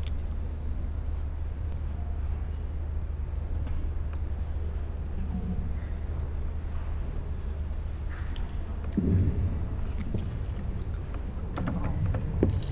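A man speaks calmly through loudspeakers in a large hall.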